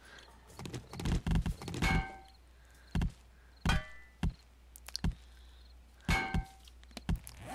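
Small stones clatter and knock as they are gathered up.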